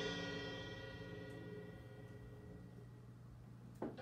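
A cymbal rings out and slowly fades.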